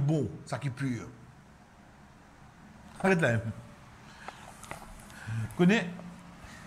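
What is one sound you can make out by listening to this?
A man speaks calmly, in short phrases with pauses.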